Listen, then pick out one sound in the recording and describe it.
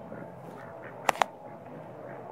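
A duck flaps its wings.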